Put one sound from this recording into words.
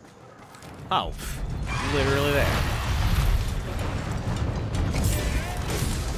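Heavy blows and impacts thud in a fight.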